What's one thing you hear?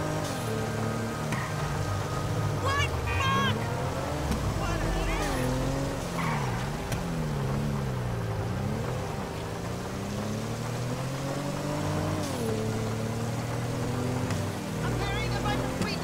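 A car engine revs up and down as the car speeds along.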